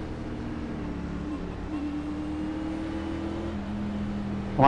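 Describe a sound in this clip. A race car engine revs up.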